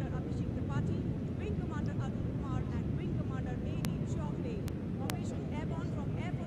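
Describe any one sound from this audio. Jet engines roar steadily overhead.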